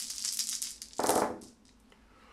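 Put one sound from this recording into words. Dice tumble and thud onto a soft cloth.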